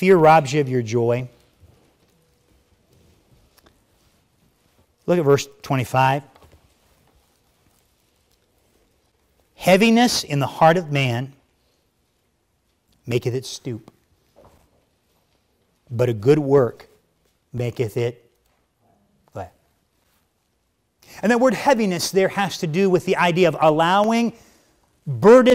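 A middle-aged man speaks calmly through a microphone, in short phrases with pauses.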